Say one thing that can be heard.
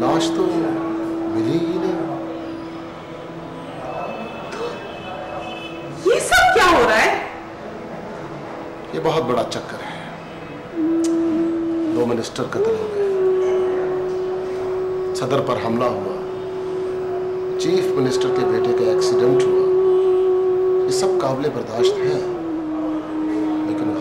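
A man speaks quietly and earnestly close by.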